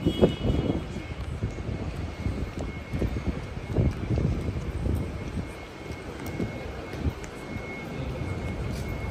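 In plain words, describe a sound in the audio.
Footsteps tap on pavement nearby.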